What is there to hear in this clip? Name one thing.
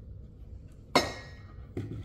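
A ceramic ornament knocks against a hard countertop.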